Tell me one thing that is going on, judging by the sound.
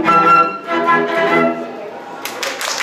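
A flute plays a melody.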